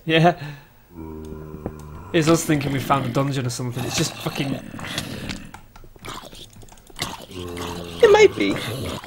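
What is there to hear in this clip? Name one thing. A zombie groans nearby.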